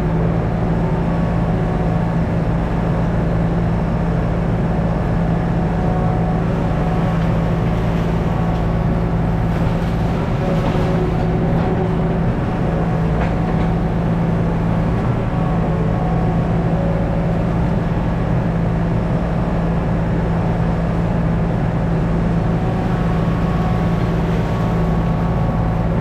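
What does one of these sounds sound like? Hydraulics whine as a digger's arm moves.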